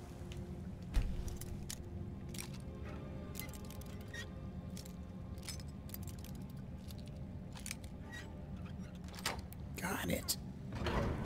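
A lock pick scrapes and clicks inside a metal lock.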